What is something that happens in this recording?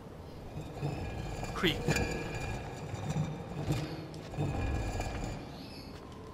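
A heavy stone slab grinds as it slides open.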